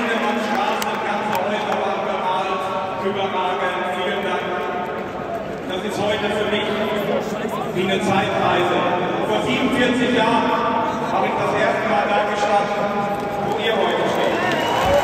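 A large crowd sings together in an open stadium.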